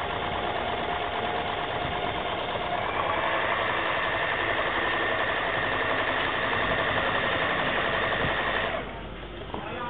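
A sewing machine runs steadily, stitching.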